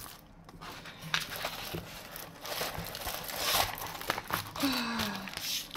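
A plastic-covered sheet crinkles and rustles as hands handle it.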